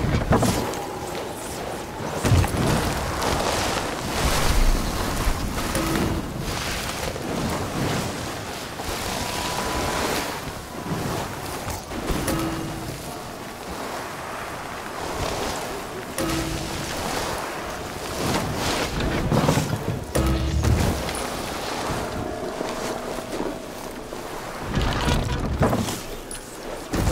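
A snowboard carves and hisses through snow.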